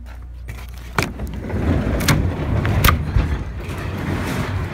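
A heavy wooden door rumbles and scrapes as it slides open.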